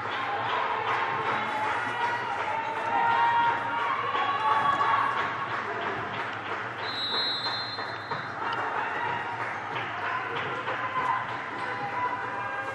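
Young women call out to each other across a large echoing hall.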